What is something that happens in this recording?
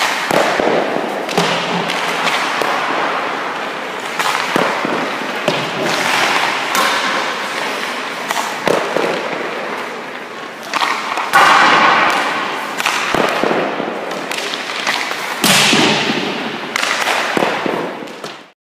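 Skates scrape sharply on ice, echoing in a large rink.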